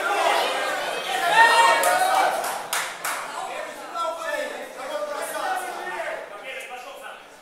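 A crowd of men and women shouts and cheers in an echoing hall.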